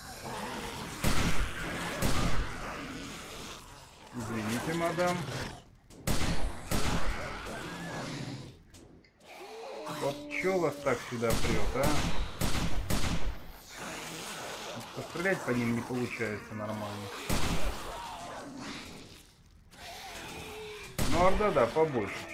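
A gun fires in sharp, repeated shots.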